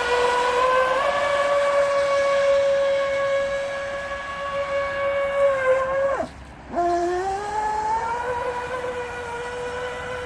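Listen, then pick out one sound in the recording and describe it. Water splashes around a speeding toy boat.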